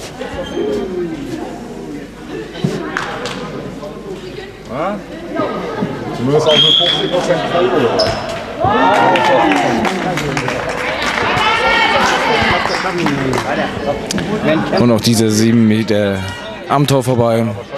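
Young women shout to each other in a large echoing sports hall.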